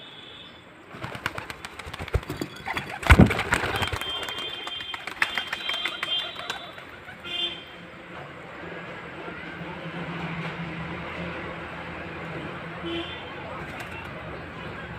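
Pigeons flap their wings as they land on a rooftop.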